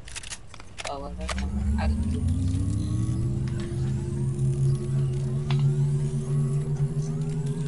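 A low electronic hum rises in pitch and then holds steady.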